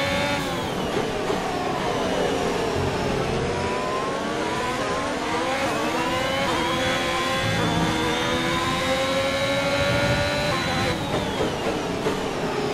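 A racing car engine screams, dropping in pitch while braking, then rising through the gears.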